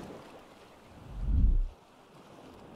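A wooden fence is set down with a low, dull thud.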